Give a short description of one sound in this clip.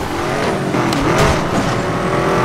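A car scrapes and crashes against a wall.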